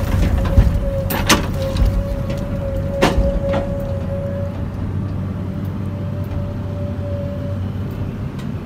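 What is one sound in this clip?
Hydraulics whine as a loader arm swings.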